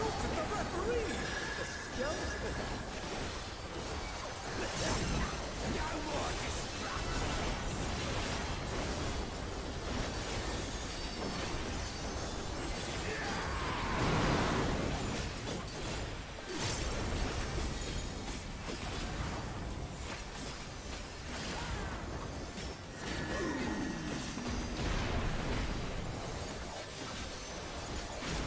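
Spell effects crackle and boom throughout a game battle.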